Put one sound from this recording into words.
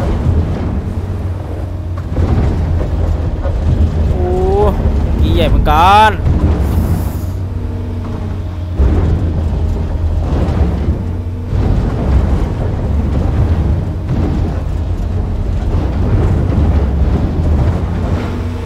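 Dirt and soil scrape and pour from an excavator bucket.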